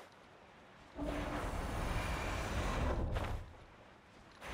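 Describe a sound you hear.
Wind rushes past a gliding figure.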